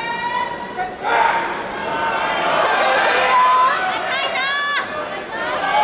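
Men shout loudly from the stands.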